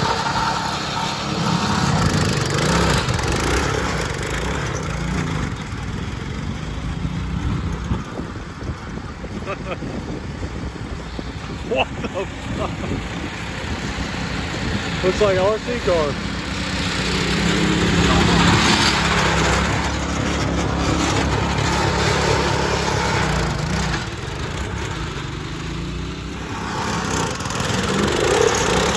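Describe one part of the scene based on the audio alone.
A small lawn tractor engine roars and revs close by.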